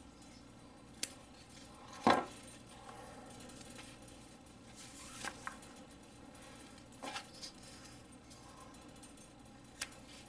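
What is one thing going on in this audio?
Metal knives clack down onto a wooden table.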